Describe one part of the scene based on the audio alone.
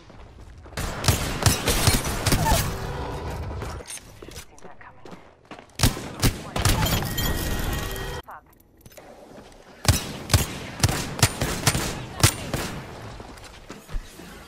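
Gunshots fire in rapid bursts with loud cracks.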